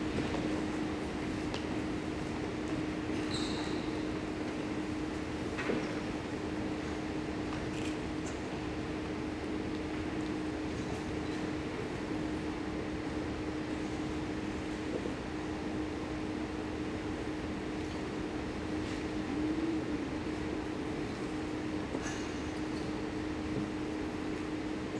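Children in a seated audience murmur softly in a large echoing hall.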